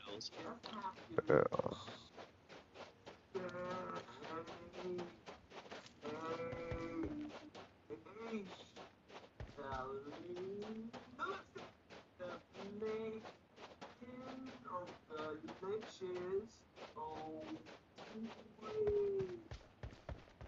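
Footsteps run quickly over dry, sandy ground.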